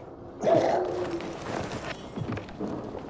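A body's clothing rustles as it is searched.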